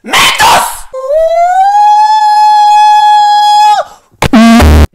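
A rubber chicken lets out a long, steady squeal.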